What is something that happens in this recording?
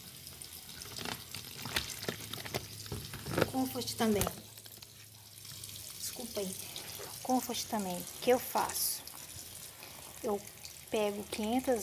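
A plastic bottle knocks against the rim of a tub.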